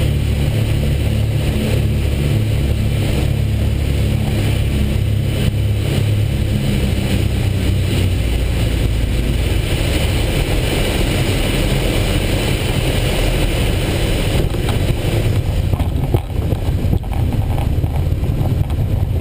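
Wind rushes past the cockpit.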